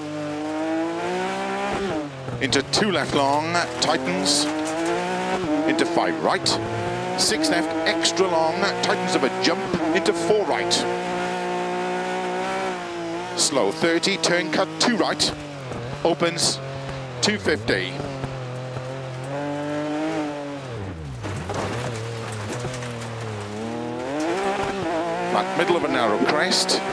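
A racing car engine roars, revving up and down as gears shift.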